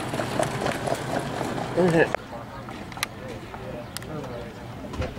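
Horses' hooves thud on a dirt track as sulkies race past.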